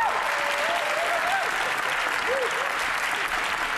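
A crowd of young people cheers and whoops.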